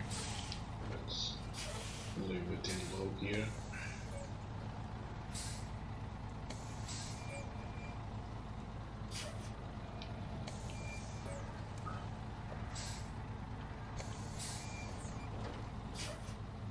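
A heavy truck engine rumbles steadily at low speed.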